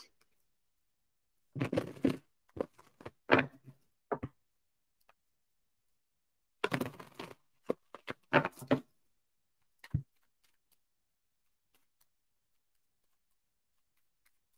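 Cards shuffle and riffle.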